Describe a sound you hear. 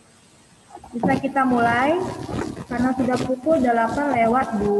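A young girl speaks clearly over an online call.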